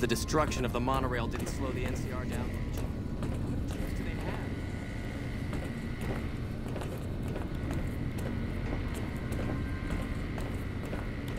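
Footsteps clank on a metal grating floor.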